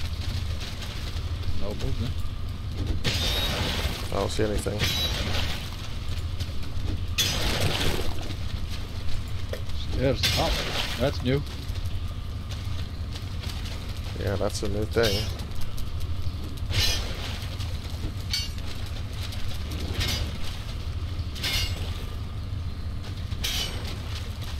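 A pickaxe strikes a scrap pile again and again with metallic crunches.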